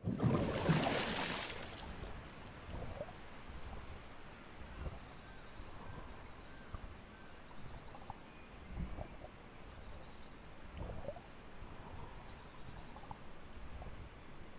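Waterfalls rush steadily nearby.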